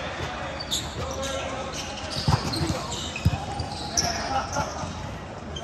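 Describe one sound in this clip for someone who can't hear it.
Shoes squeak sharply on a hard court.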